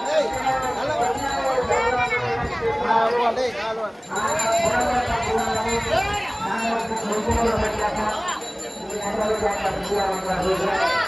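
A crowd of men chants loudly together outdoors.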